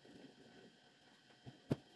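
A spray can hisses briefly.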